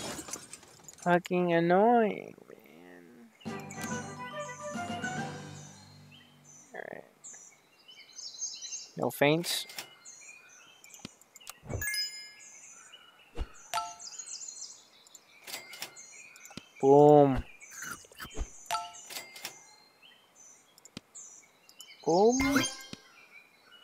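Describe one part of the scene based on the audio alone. Cartoon animal cries chirp and squeak from a game.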